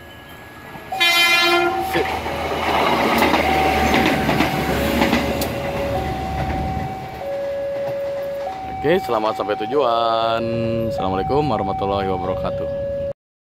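A train horn blares loudly several times.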